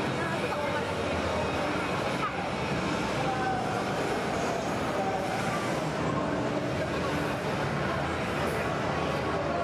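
Electronic game sounds play from a small phone speaker.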